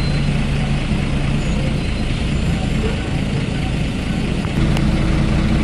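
Rattles and creaks come from inside a moving bus.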